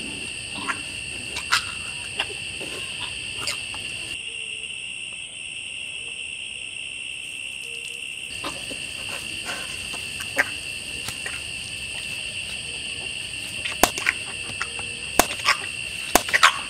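A young woman groans and gasps in pain close by.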